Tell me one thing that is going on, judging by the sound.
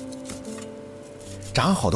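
A knife cuts through crisp pork.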